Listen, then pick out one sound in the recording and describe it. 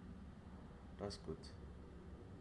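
A man says a few words briefly, close to a microphone.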